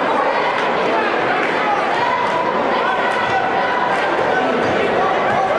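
A large crowd murmurs and chatters in an echoing gym.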